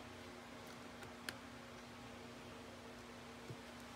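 A laptop lid clicks as it is opened.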